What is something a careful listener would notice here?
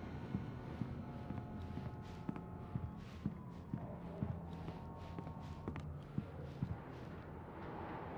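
Footsteps tread softly across a wooden floor.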